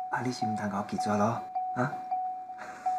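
A middle-aged man speaks softly and pleadingly, close by.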